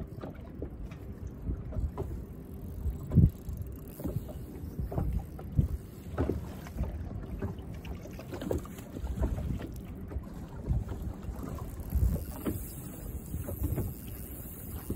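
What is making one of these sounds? Wind gusts outdoors against a microphone.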